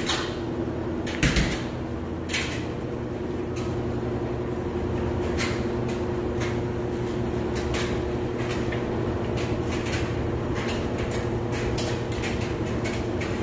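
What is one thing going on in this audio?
A washing machine's control knob clicks as it is turned.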